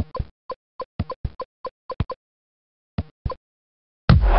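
A ball is kicked with sharp thumps.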